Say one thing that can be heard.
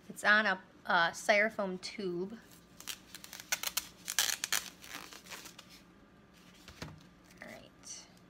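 Paper rustles and crinkles as it is rolled up by hand.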